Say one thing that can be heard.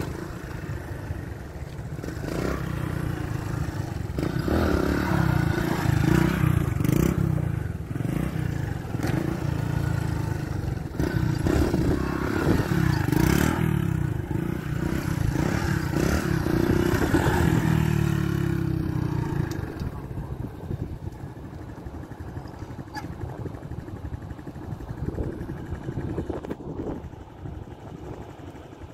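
A motorcycle engine revs loudly, rising and falling.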